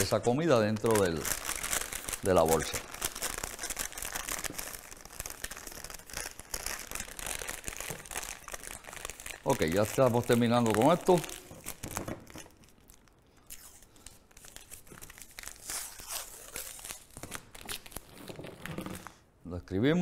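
Paper crinkles and rustles in a man's hands.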